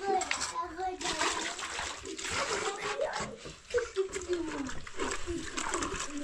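Water sloshes and splashes in a basin as hands work in it.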